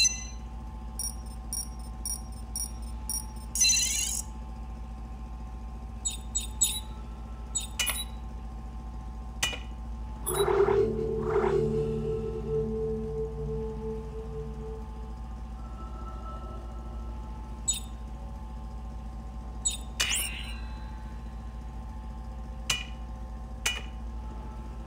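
Short electronic beeps and clicks sound now and then.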